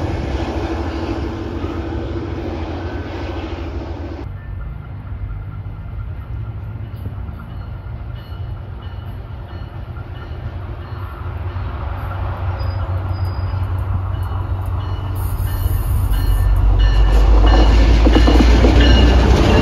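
A diesel locomotive engine rumbles and grows louder as the train draws near.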